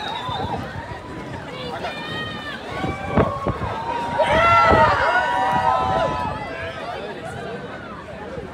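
A live band plays music outdoors through loudspeakers.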